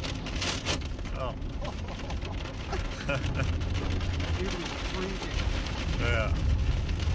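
Windscreen wipers swish and thump across the glass.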